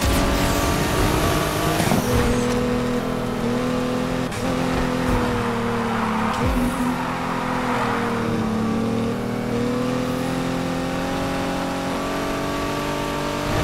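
A car engine roars at high revs, shifting gears as it speeds up.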